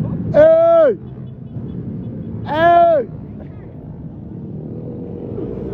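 Motorbike engines rumble and buzz as riders pass in traffic.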